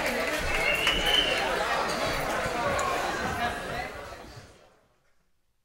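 A live band plays loud rock music in a large echoing hall, then fades away.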